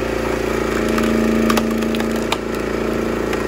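Wood cracks and splits apart.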